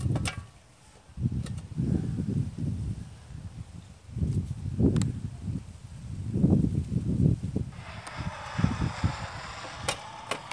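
Wind buffets the microphone outdoors in low gusts.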